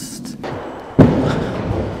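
A skateboard lands with a sharp clack.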